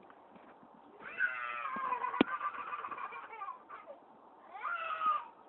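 A toddler squeals and babbles excitedly close by.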